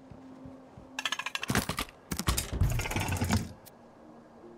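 A chest creaks open.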